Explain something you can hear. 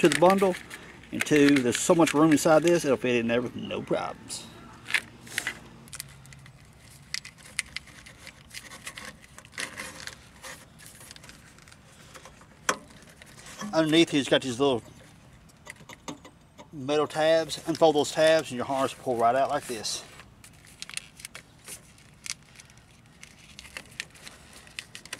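A plastic wire loom rustles and clicks as hands handle it.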